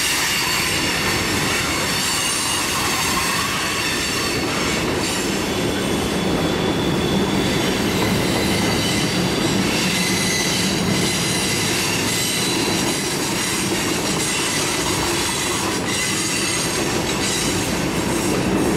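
A long freight train rumbles steadily past on the tracks.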